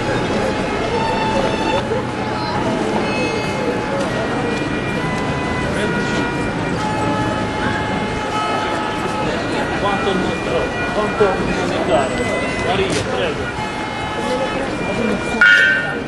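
A violin plays a tune nearby.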